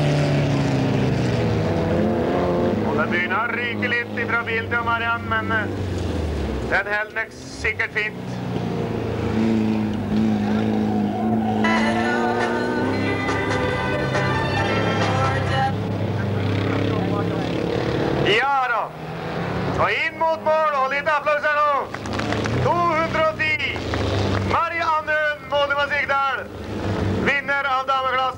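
Car engines roar and rev.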